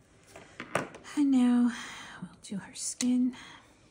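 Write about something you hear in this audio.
A plastic marker clicks against other markers as it is picked up.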